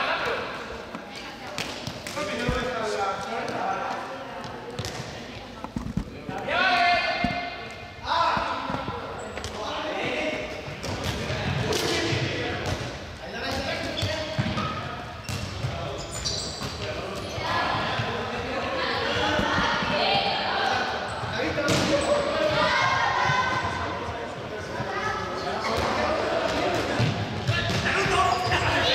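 Young people shout and chatter throughout a large echoing hall.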